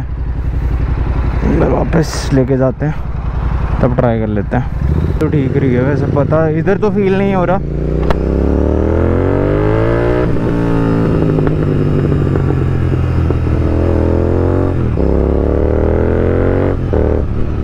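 A motorcycle engine rumbles and revs up through the gears.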